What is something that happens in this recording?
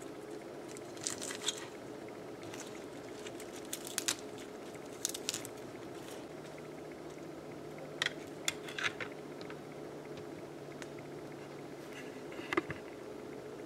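Leaves rustle softly as a hand gathers them.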